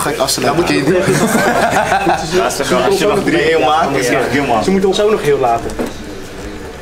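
A young man laughs and talks with animation close by.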